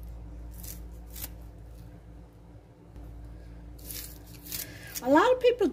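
Scissors snip through green onions with short crisp cuts.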